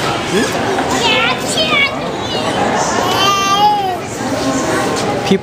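A girl shouts and squeals close by.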